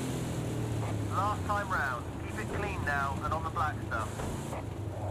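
Tyres squeal under hard braking.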